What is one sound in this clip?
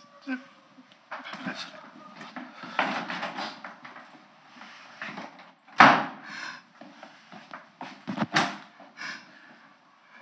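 A young man sobs and cries.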